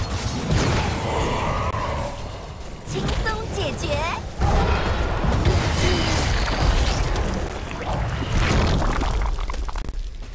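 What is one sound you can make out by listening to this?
Fantasy battle sound effects of spells and blows crash and whoosh.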